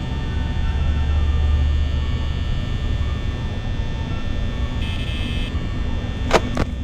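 A desk fan hums and whirs steadily.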